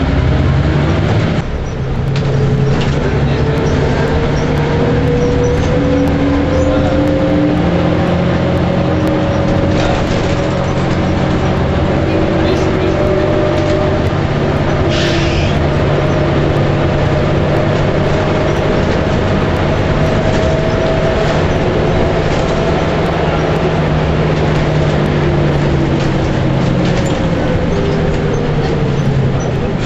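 Tyres roll on the road beneath a bus.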